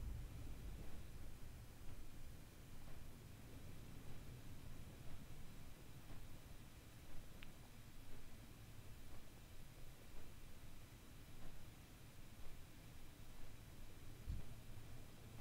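A large winged creature's wings beat steadily as it flies.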